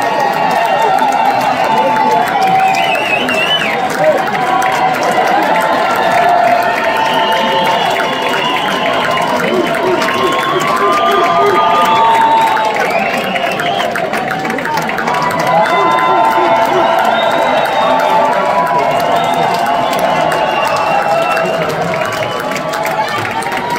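Many people in a crowd whistle shrilly.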